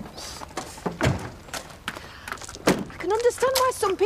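A car door clunks shut.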